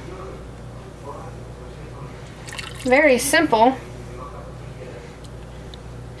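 Thick liquid pours into a container.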